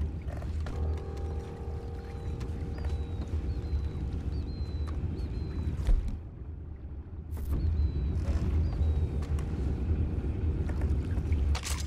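Footsteps thud on a wooden boat deck.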